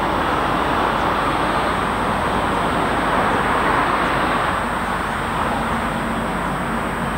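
A distant train rumbles slowly closer along the tracks.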